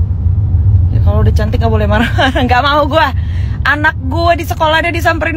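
A young woman speaks with animation, close to a phone microphone.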